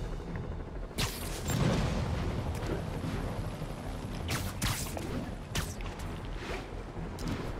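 Web lines shoot out with sharp, quick whooshes now and then.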